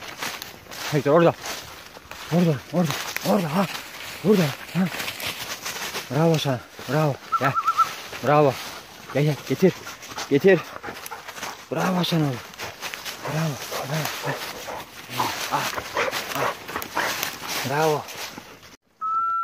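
A dog barks repeatedly nearby.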